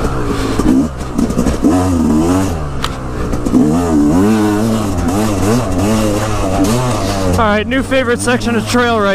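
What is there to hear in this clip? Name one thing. A dirt bike engine revs up and down loudly, close by.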